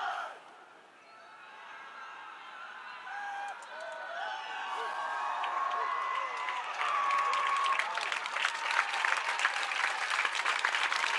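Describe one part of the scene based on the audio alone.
A large group of soldiers shouts and cheers in unison.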